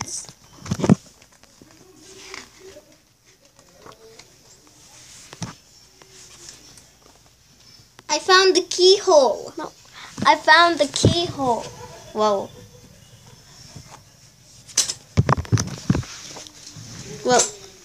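Pages of a paper comic book rustle and flip as they turn.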